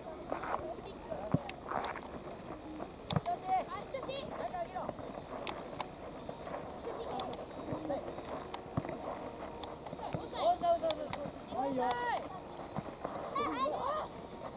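Young players shout and call out across an open field.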